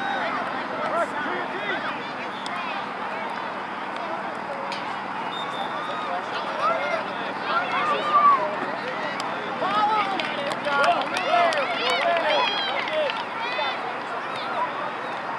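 A crowd of spectators shouts and cheers outdoors, getting louder toward the end.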